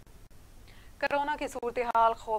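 A young woman reads out news clearly through a microphone.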